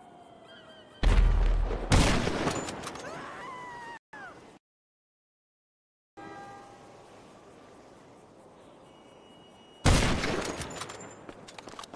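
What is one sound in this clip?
A sniper rifle fires loud, sharp shots that ring out and fade.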